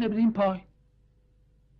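A woman speaks softly, close by.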